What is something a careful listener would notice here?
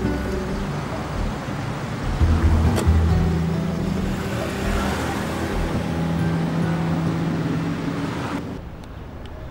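A car drives past on a wet road with tyres hissing.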